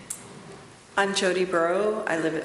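A woman speaks calmly into a microphone at close range.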